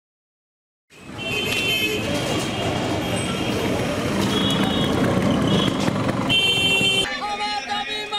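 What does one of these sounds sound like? Busy street traffic and bustle rumble outdoors.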